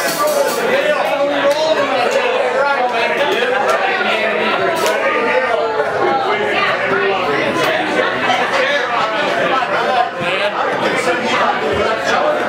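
A crowd chatters loudly in a busy room.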